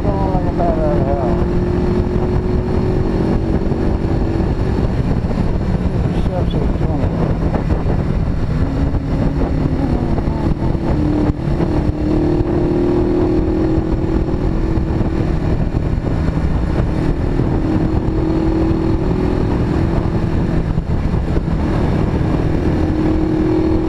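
A motorcycle engine hums steadily, rising and falling in pitch as it rides.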